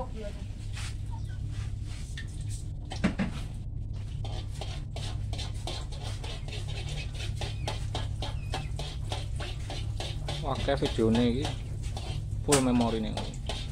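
Oil sizzles and crackles in a frying pan.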